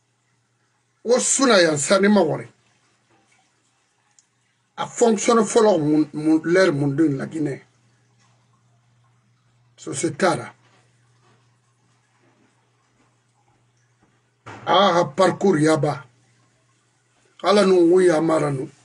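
An older man speaks with animation in bursts, close to a microphone, with pauses between phrases.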